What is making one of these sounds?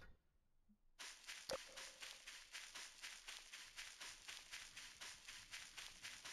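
Footsteps swish steadily through tall grass.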